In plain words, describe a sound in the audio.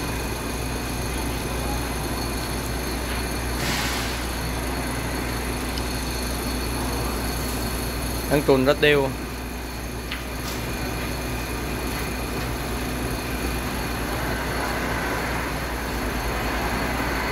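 A paddle stirs and sloshes liquid in a pot.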